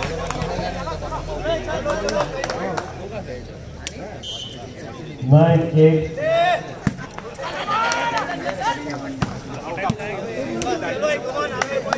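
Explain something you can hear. Men shout and call out to each other across an outdoor court.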